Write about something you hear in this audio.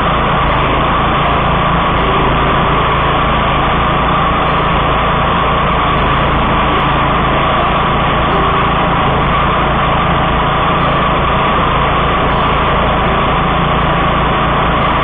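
A mower engine roars loudly and steadily close by.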